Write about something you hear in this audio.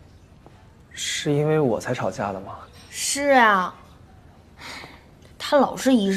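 A young woman answers in a soft, upset voice, close by.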